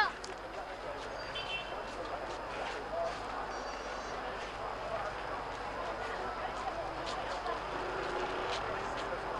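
Footsteps shuffle on pavement.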